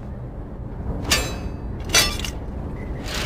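A blade strikes a metal shutter with loud clangs.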